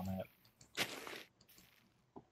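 A crackling, crinkling burst sounds as plants sprout.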